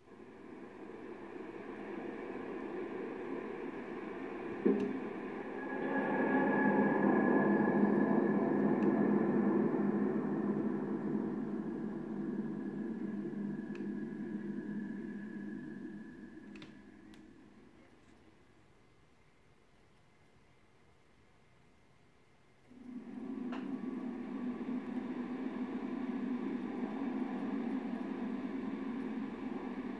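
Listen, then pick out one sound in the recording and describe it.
Music and game sounds play from a television's speakers.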